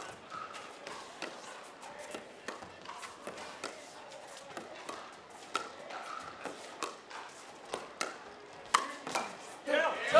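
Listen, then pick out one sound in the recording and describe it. Paddles pop against a plastic ball in a quick rally.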